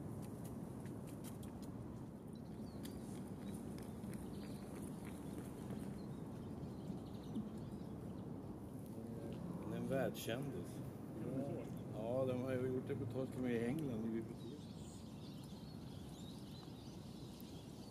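A bird wades and splashes softly through shallow water.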